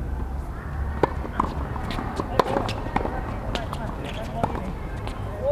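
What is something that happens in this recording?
Tennis rackets hit a ball back and forth.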